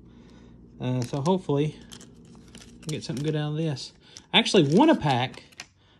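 A foil wrapper crinkles and tears open.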